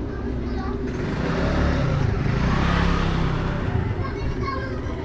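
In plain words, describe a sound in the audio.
A motorbike engine passes close by.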